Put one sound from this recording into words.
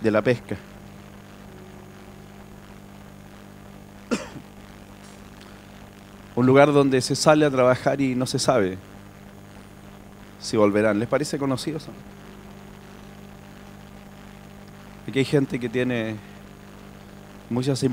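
A man speaks slowly into a microphone over loudspeakers, with long pauses.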